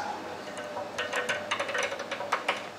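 A metal machine lever clicks and rattles as it is worked.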